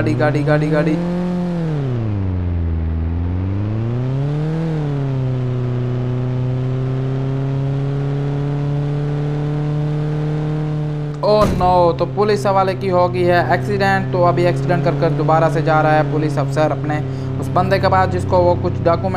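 A game car engine hums and revs up and down, then holds a steady drone.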